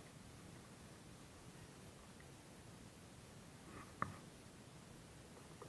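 A fishing line rustles softly as hands pull it in.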